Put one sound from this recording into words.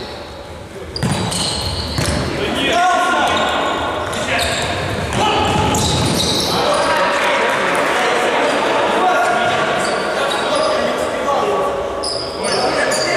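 Men shout and call out to each other in an echoing hall.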